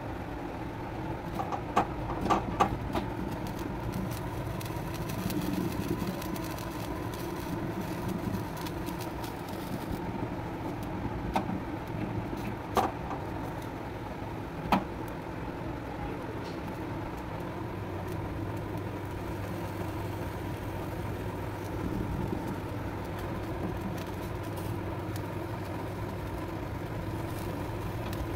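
A gas flame roars steadily.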